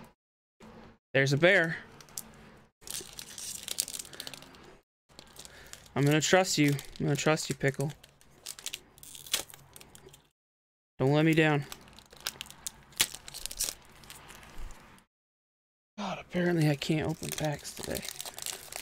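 Foil card packs crinkle and rustle as they are handled and torn open.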